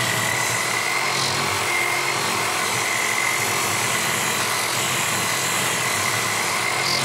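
A drill motor whines steadily as it spins a sanding disc.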